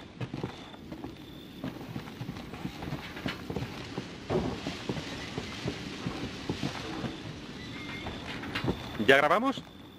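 Footsteps thud on creaky wooden floorboards.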